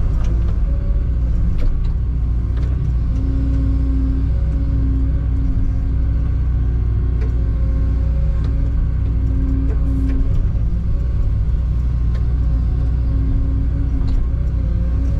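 Metal knocks and clanks now and then.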